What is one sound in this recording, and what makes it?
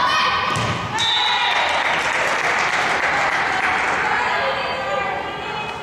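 A crowd of spectators cheers and claps.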